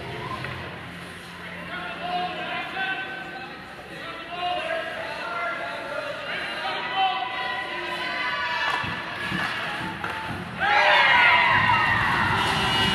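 Spectators chatter nearby in a large echoing arena.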